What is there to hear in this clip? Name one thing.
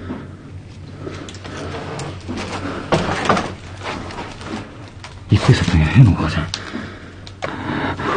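Paper burns with a soft crackle.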